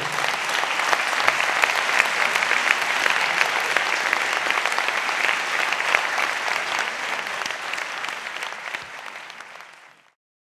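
An audience applauds loudly in a large hall, then the clapping fades away.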